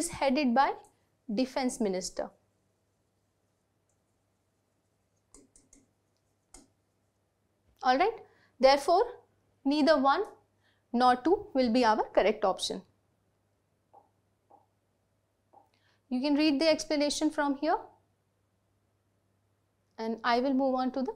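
A young woman speaks clearly into a close microphone, explaining in a calm teaching tone.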